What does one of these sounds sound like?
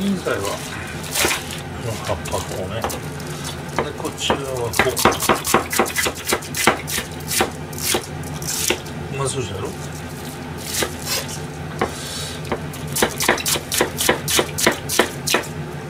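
A knife chops on a cutting board in quick knocks.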